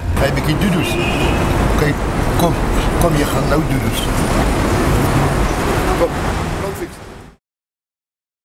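A man talks softly to a dog close by.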